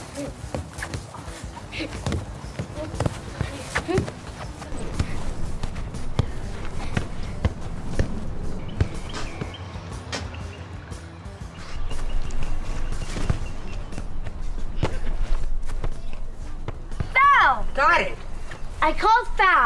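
A foot kicks a soccer ball with dull thuds.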